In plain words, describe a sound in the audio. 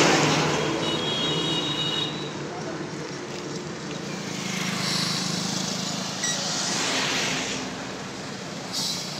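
Traffic roars past on a road outdoors.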